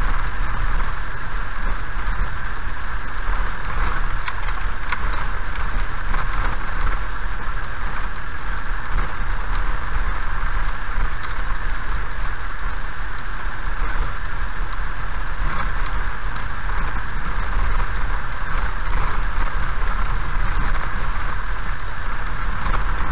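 A car engine rumbles steadily while driving slowly.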